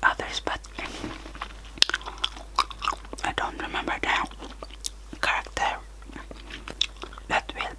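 Wet mouth clicks and lip smacks pop close to a microphone.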